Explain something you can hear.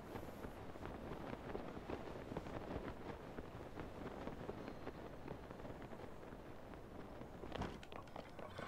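Wind rushes steadily past while gliding through the air.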